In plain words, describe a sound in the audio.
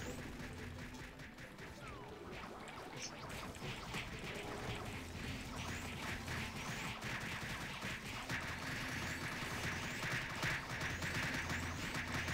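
Game spell effects crackle and chime in rapid bursts.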